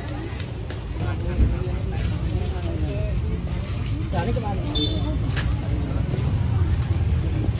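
Men and women chat casually nearby outdoors.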